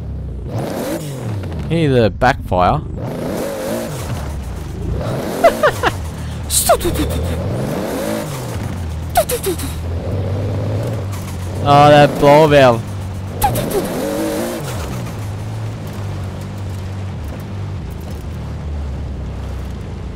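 A sports car engine revs up and down through gear changes.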